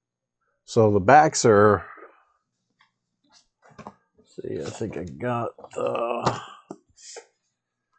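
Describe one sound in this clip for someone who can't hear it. A stiff card sheet rustles as it is handled.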